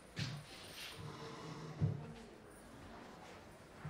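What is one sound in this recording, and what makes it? A plastic chair is bumped and knocks against a table.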